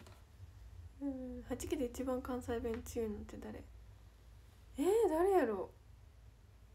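A young woman speaks close to a microphone in a high, animated voice.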